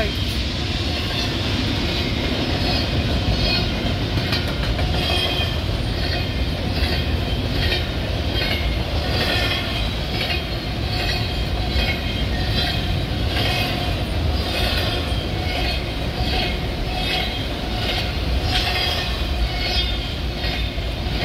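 Train wheels clatter and squeal in a rapid, even rhythm on the rails.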